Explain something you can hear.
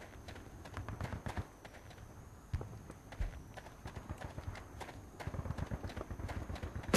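Heavy boots thud quickly on sandy ground.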